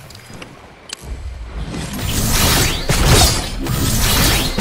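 Fireworks whoosh and crackle loudly.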